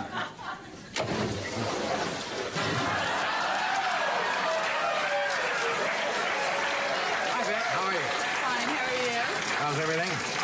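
A shower sprays water steadily.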